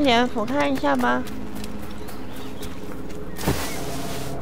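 Footsteps run quickly over dirt.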